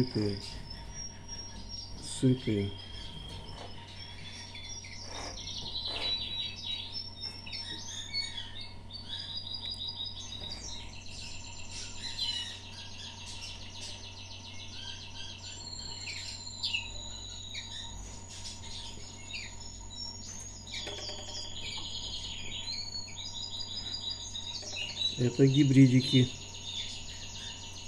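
Baby birds cheep and chirp shrilly, begging for food, close by.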